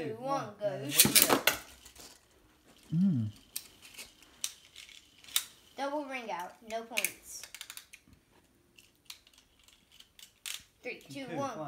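Small plastic toy parts click and snap.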